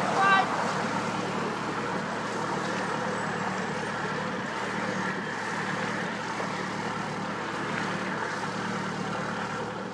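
A boat's engine hums steadily as the boat moves slowly away.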